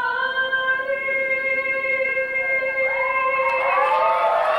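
A young woman sings into a microphone, holding long steady notes.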